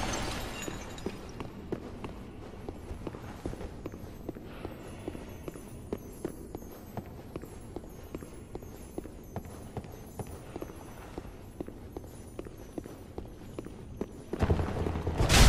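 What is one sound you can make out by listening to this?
Armoured footsteps clank steadily on a stone floor.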